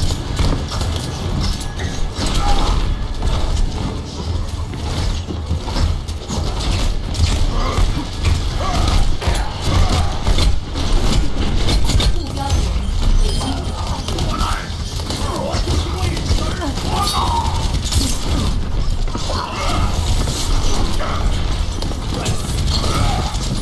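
Game gunfire rattles rapidly.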